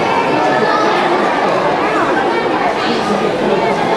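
A young girl speaks into a microphone through loudspeakers.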